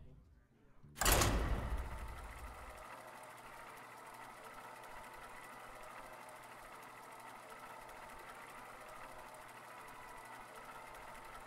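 A soft, steady whirring game sound loop hums on.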